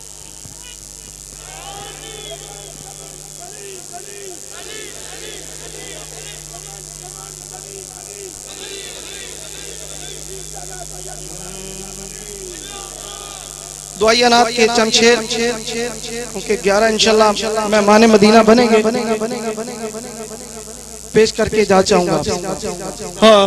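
A large crowd murmurs softly in a big open space.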